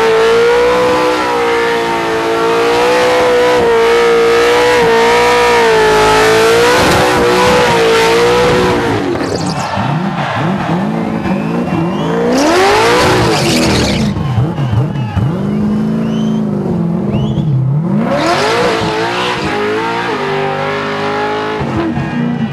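Tyres squeal and screech against the ground.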